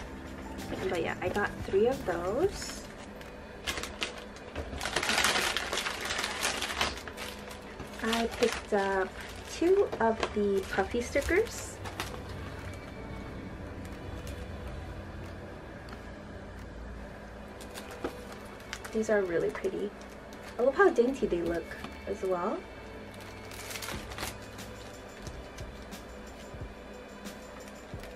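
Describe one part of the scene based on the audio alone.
Plastic packaging rustles and crinkles as hands handle it.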